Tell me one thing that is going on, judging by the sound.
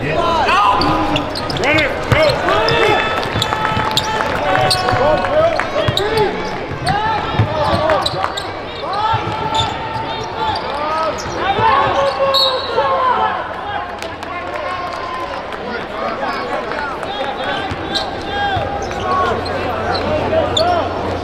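Sneakers squeak sharply on a hardwood court in a large echoing arena.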